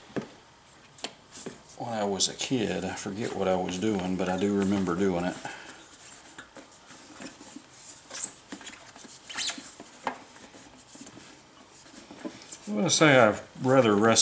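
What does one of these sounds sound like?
Rubber squeaks as a tire bead is worked over a rim.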